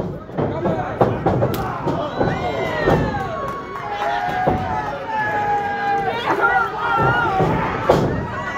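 Wrestlers thud heavily onto a ring mat.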